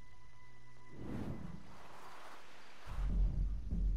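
Waves crash and wash onto a shore.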